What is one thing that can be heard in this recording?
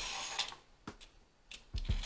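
A peeler scrapes the skin off a carrot.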